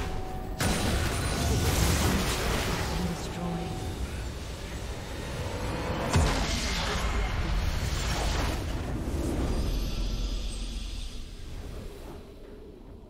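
Game fight effects clash and zap rapidly.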